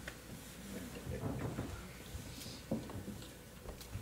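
An elderly man sits down heavily on a wooden stool.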